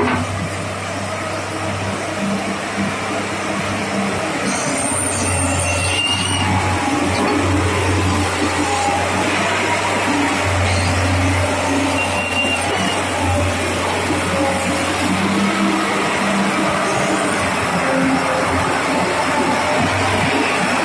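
A diesel excavator engine rumbles steadily close by.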